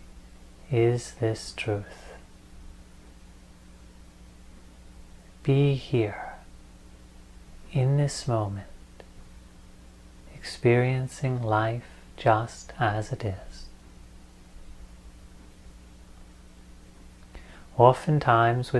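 A young man speaks calmly and slowly into a close microphone, with long pauses.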